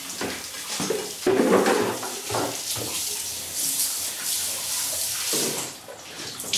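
Water runs from a tap into a container.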